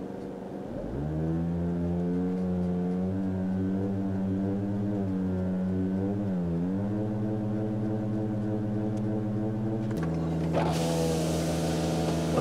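A car engine revs up and holds a steady, higher hum.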